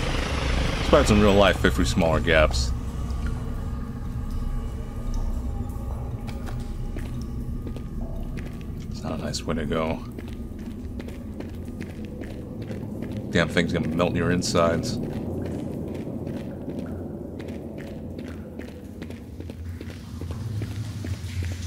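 Footsteps crunch slowly over rocky ground.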